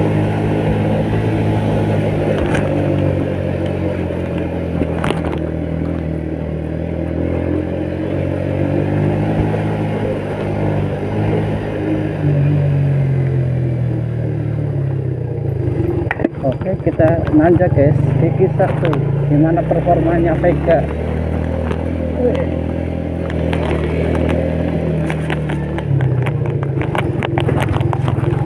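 A scooter engine hums steadily as it rides along.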